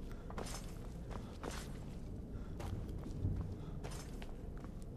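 Footsteps scuff on stone at a slow pace.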